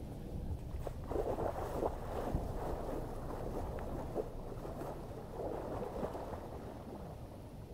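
Water splashes loudly as a man wades quickly in.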